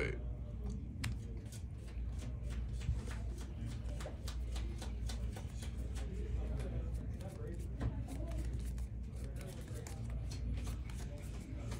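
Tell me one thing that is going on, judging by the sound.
Playing cards flick and tick rapidly in someone's hands.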